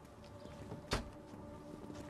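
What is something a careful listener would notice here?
A vehicle door slams shut with a loud bang.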